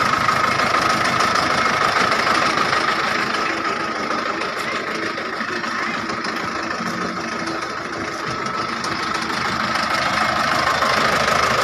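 A truck engine idles steadily close by with a low rumble and a whine.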